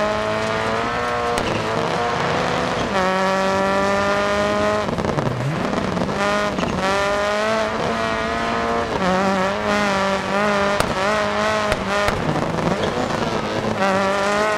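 Tyres crunch and hiss over a snowy road.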